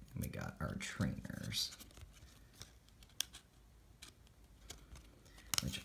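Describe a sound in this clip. Trading cards rustle and slide against each other close by.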